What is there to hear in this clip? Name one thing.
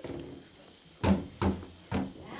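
A small child bangs on a wooden door with dull thumps.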